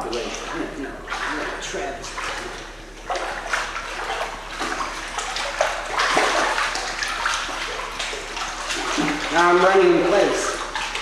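Water splashes as a small child paddles and kicks in a pool.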